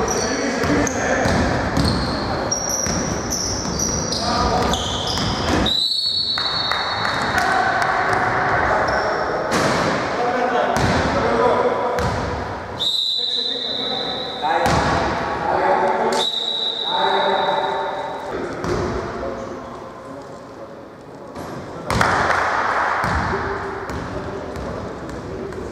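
Men shout to each other across an echoing hall.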